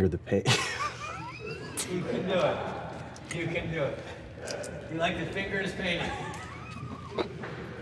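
A man laughs helplessly.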